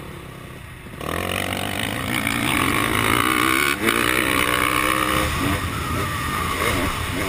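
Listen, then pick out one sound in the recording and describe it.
Other dirt bike engines whine nearby.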